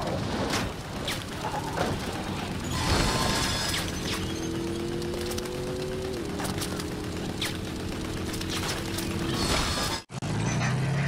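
A car engine roars at speed.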